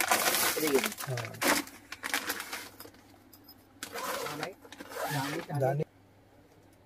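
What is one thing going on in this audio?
A plastic garment bag crinkles and rustles as it is handled.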